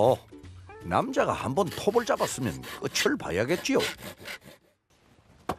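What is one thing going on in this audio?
A man speaks nearby in a lively voice.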